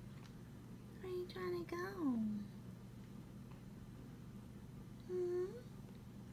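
A newborn baby makes soft cooing sounds close by.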